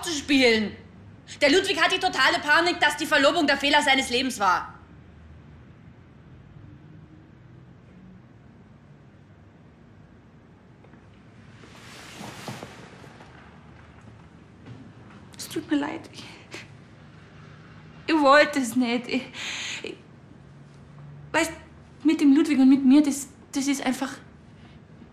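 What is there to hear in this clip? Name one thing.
A young woman speaks tensely, close by.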